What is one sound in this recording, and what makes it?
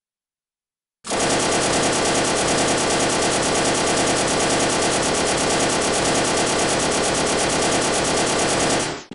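A heavy machine gun fires a long, rapid, unbroken burst.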